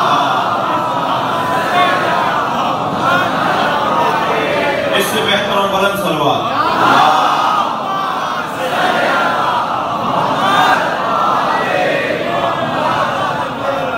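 A man speaks with emotion into a microphone, heard through loudspeakers in an echoing hall.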